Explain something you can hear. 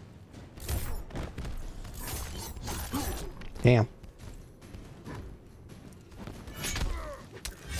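Fighters grunt loudly.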